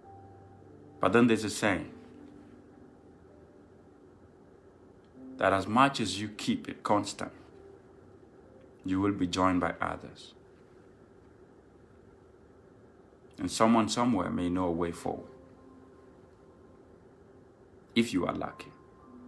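A young man speaks calmly into a nearby microphone, in short bursts with long pauses.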